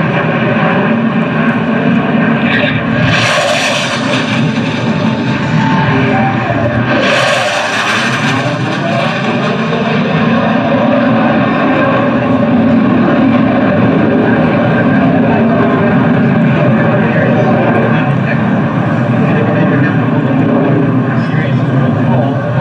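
A jet roars loudly overhead, its engine rumbling and whooshing.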